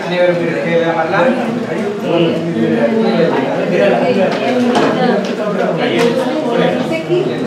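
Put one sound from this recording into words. A group of men and women sing together nearby.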